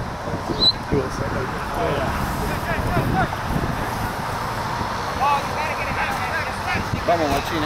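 Young men shout to each other across an open field in the distance.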